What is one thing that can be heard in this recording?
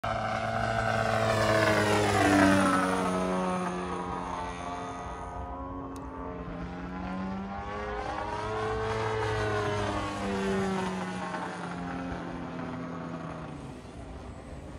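A model airplane engine whines overhead, its pitch rising and falling as it loops and passes by.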